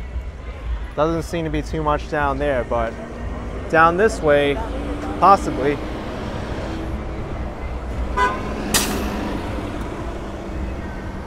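Traffic hums steadily in the open air.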